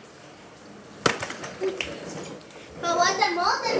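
A plastic ride-on toy knocks sharply against a hard floor.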